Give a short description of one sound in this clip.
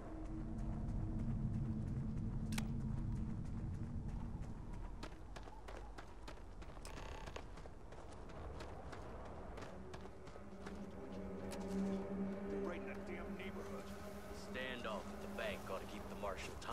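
Footsteps crunch on dirt and grass.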